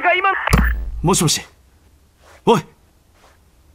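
A young man speaks urgently into a phone.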